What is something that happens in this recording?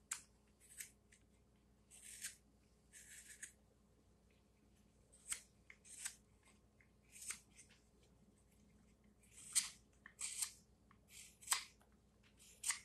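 A knife shaves thin curls from a piece of wood in short, scraping strokes.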